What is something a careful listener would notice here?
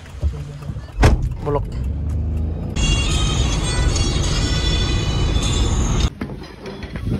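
A car engine hums while driving along a road.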